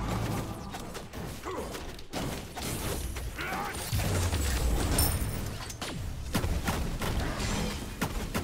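Game weapons clash and magic effects whoosh in bursts.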